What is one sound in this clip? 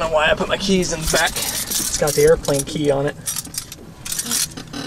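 Keys jingle in a hand.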